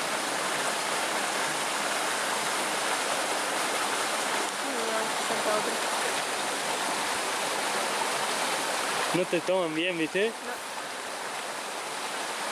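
Water ripples and gurgles steadily over stones.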